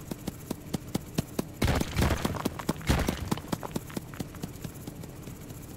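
Small guns fire in quick bursts of sharp electronic shots.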